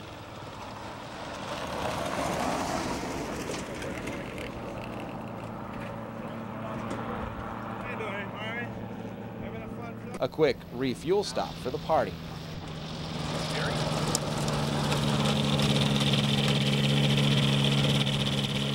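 A small aircraft engine drones steadily and grows louder as it comes closer.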